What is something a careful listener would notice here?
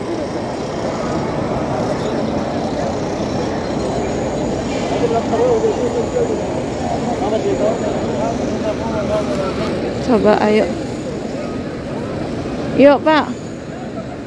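A large crowd murmurs and chatters steadily in a wide echoing space.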